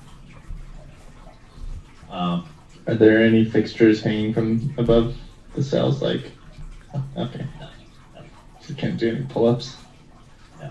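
A woman talks over an online call.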